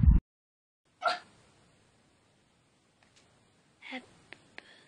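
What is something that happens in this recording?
A teenage girl speaks softly close to the microphone.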